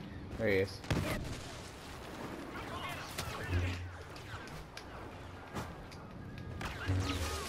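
A lightsaber clashes with sharp impacts.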